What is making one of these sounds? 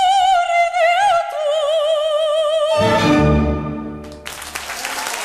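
A woman sings with vibrato through a microphone.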